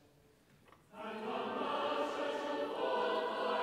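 A congregation sings together.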